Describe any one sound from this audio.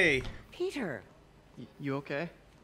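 A young man asks a short question, close by.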